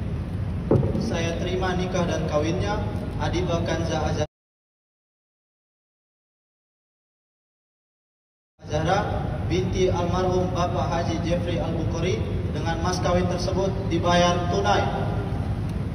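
A man speaks firmly into a microphone, heard over loudspeakers.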